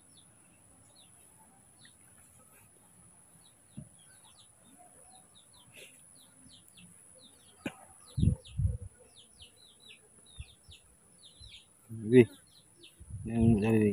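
A baby monkey squeaks softly.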